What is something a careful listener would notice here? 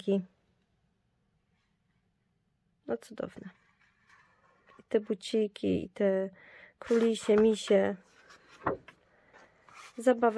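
A sheet of paper rustles softly as it is handled.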